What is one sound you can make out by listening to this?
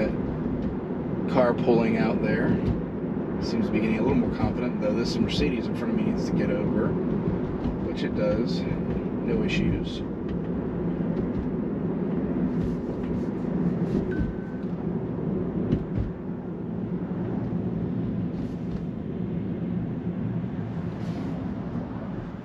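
A car's interior hums steadily as it drives along the road.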